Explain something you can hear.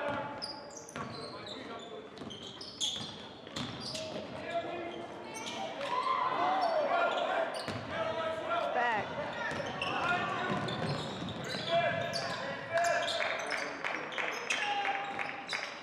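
Young men shout and call out in an echoing gym.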